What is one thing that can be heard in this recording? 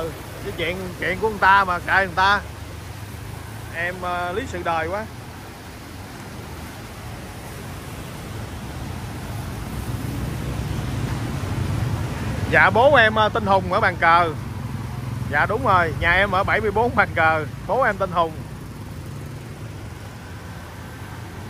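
Motorbike engines rumble as they ride through deep water.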